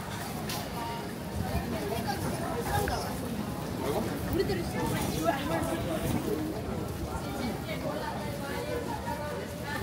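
Men and women chatter at a distance outdoors.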